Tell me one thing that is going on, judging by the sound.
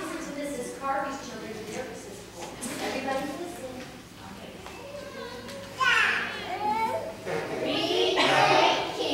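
Young children chatter and call out in a large echoing hall.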